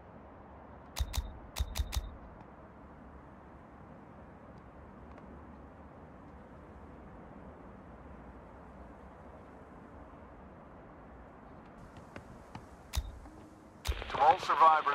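Short game interface clicks sound a few times.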